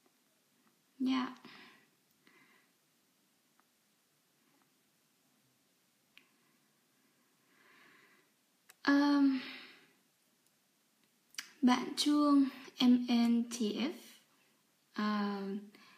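A young woman speaks calmly and close to a microphone, with pauses.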